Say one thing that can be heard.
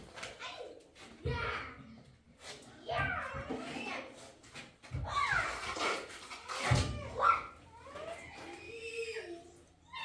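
A trowel scoops plaster from a tub.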